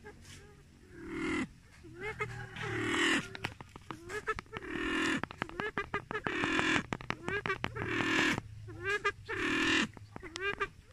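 A pheasant calls loudly with harsh, repeated cries close by.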